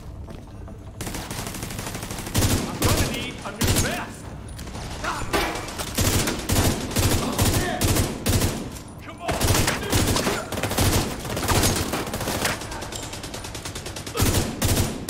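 A rifle fires in rapid bursts, with loud shots cracking close by.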